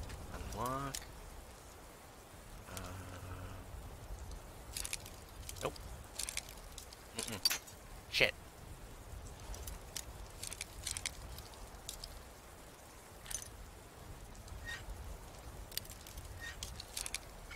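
A metal lock pick clicks and scrapes inside a lock.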